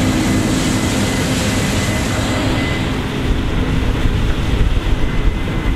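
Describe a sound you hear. Straw and chaff rustle as a combine harvester cuts a crop.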